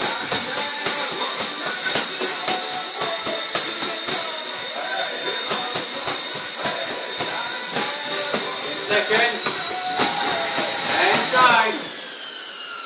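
Boxing gloves thump against punch mitts in quick bursts.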